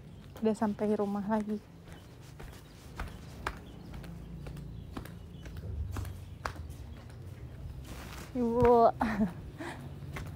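A young woman speaks in short high-pitched bursts, close to a phone microphone.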